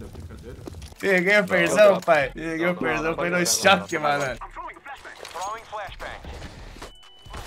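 A man talks excitedly into a microphone.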